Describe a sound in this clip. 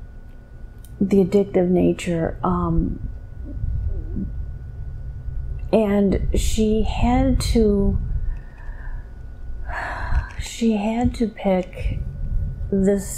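A woman speaks slowly and drowsily close to a microphone, with long pauses.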